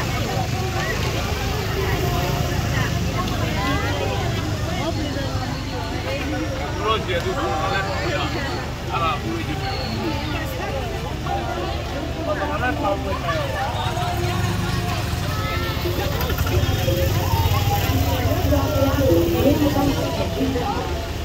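A crowd of people chatter and call out outdoors.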